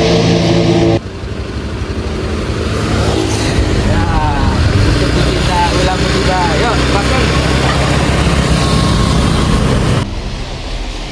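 Traffic passes on a road.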